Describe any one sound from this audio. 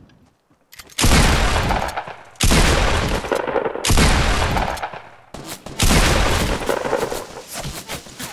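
Loud shotgun blasts boom one after another, each followed by a long echo.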